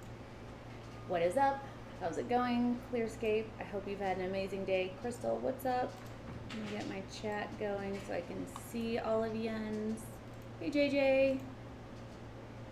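A young woman talks calmly into a microphone.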